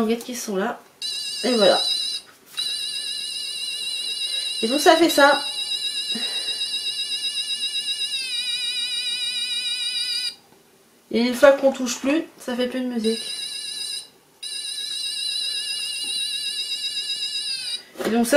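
A small toy plays a high, tinkling electronic tune.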